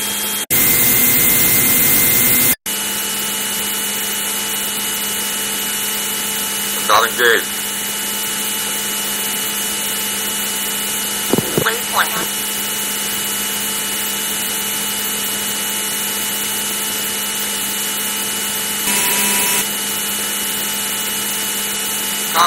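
A jet fighter engine drones steadily in an old computer game.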